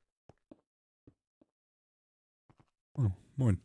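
A pickaxe chips at stone in short, sharp taps.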